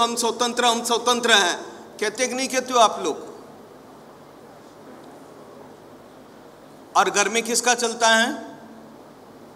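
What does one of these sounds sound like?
An elderly man speaks with animation, pausing between phrases.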